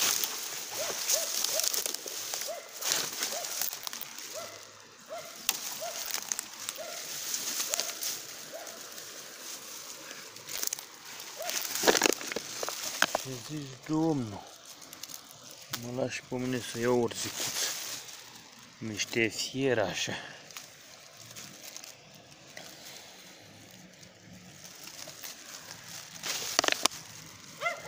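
Dry twigs and grass rustle and crackle close by as hands push through them.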